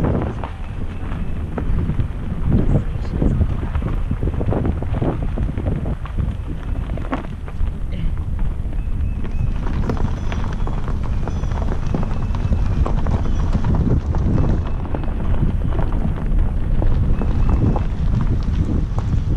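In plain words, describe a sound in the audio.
Tyres crunch and rumble over gravel as a car drives slowly.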